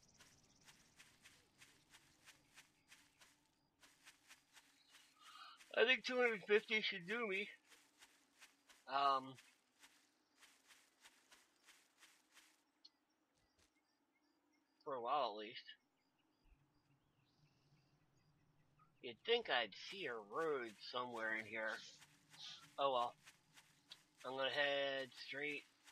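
Footsteps rustle through grass at a steady pace.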